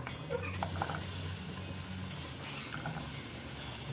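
Chopped vegetables slide off a board and drop into a pot.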